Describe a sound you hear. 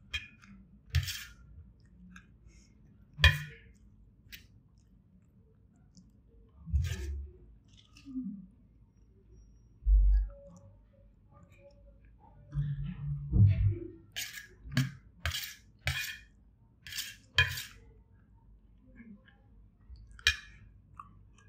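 A spoon scrapes and clinks against a metal plate.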